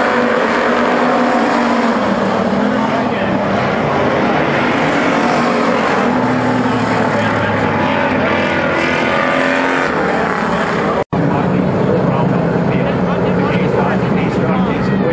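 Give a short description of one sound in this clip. Engines rev and whine up and down through gear changes.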